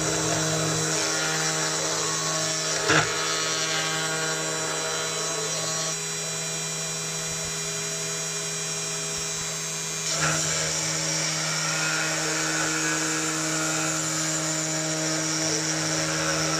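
A cutting bit grinds through plastic.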